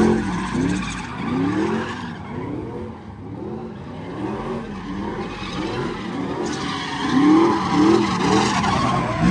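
Tyres squeal and screech on pavement.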